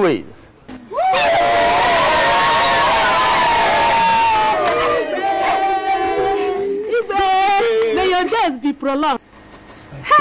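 A crowd of villagers shouts and cheers together outdoors.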